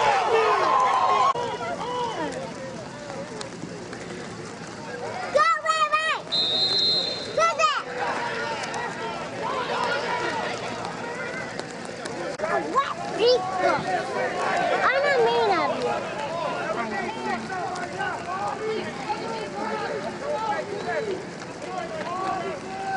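A crowd of young men shouts and cheers nearby outdoors.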